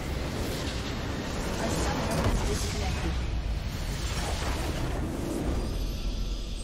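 A large crystal bursts with a deep rumbling blast.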